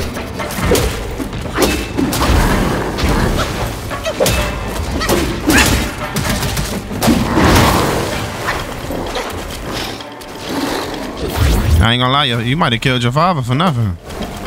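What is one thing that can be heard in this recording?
A staff strikes with heavy thuds and impacts.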